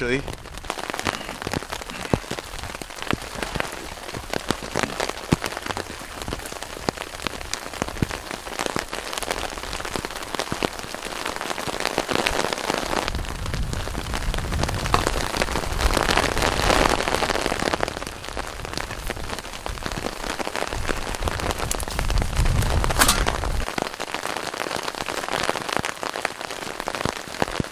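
Footsteps rustle and crunch over leaves and twigs.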